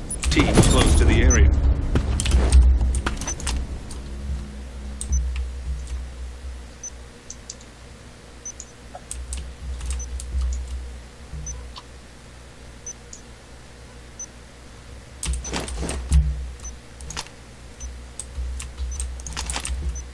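A planted device beeps at a steady pace.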